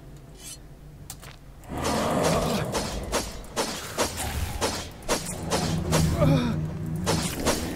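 A knife slashes through the air with sharp swishes.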